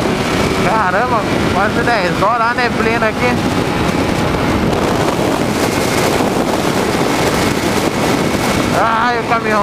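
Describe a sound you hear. A motorcycle engine roars steadily at speed.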